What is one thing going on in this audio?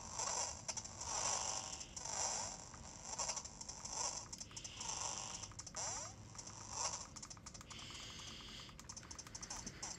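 Tinny electronic game music plays from a small speaker.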